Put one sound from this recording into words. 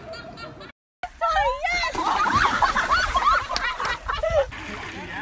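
Water splashes loudly as a person plunges into a pond.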